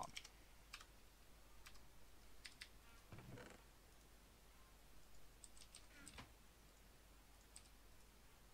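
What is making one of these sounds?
Short game clicks sound as items are moved around a menu.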